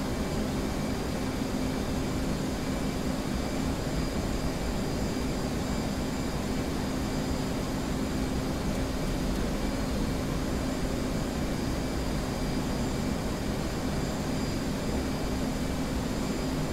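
A jet engine hums steadily.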